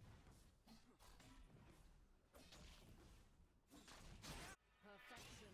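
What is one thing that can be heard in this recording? Magic blasts and sword hits crackle in a fight.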